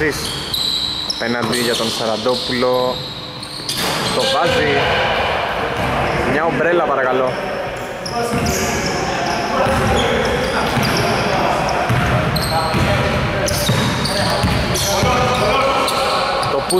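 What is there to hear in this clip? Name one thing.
Sneakers squeak on a hardwood floor in a large echoing hall.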